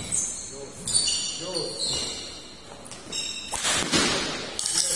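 A shuttlecock is struck sharply by a racket.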